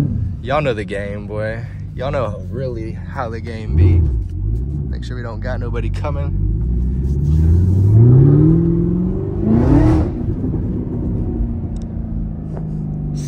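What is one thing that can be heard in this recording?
A car engine rumbles steadily from inside the cabin.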